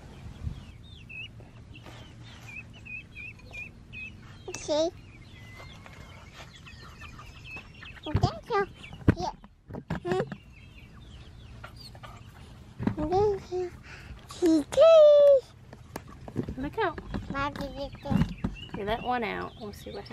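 Small chicks cheep and chirp close by.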